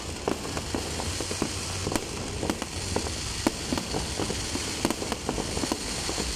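Fireworks bang overhead.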